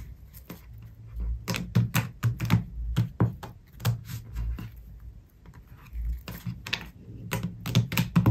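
Playing cards riffle and snap as they are shuffled by hand, close by.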